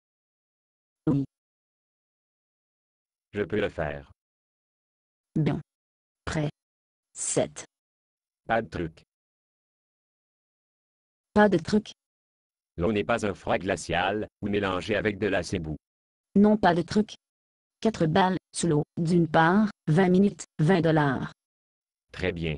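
A young girl's voice answers in short, cheerful lines.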